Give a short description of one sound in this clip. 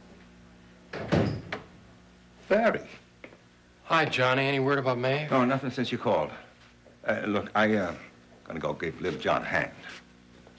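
An older man speaks calmly.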